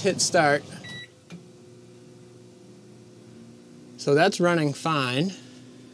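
A microwave oven hums steadily as it runs.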